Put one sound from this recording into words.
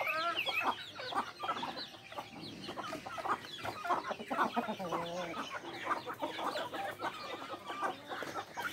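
Many chickens cluck and chirp close by.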